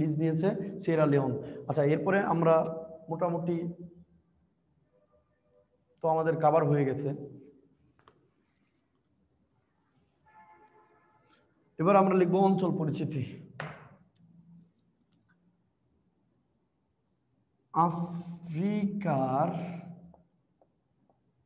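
A young man speaks calmly, close by.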